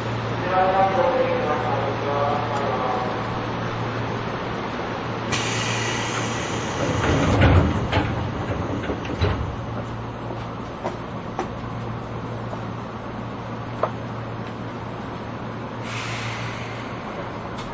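A stopped electric train hums steadily close by.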